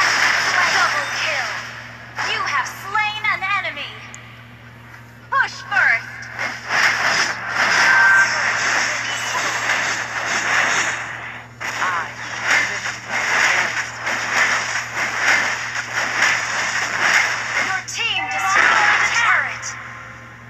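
Game battle effects clash and burst in quick succession.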